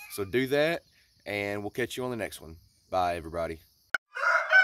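A young man talks close to the microphone with animation.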